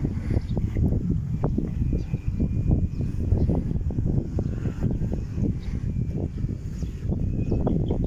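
Wind gusts rumble steadily across the microphone outdoors.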